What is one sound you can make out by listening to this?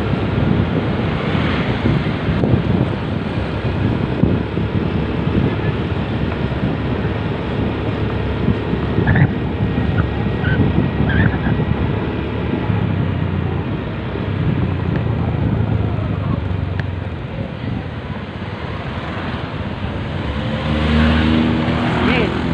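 Wind buffets the microphone on a moving motorcycle.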